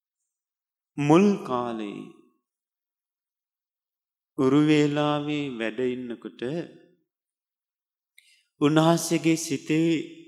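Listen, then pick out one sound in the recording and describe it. A man speaks slowly and calmly into a microphone, with long pauses.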